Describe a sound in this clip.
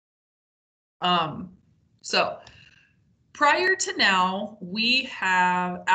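A young woman talks calmly over an online call.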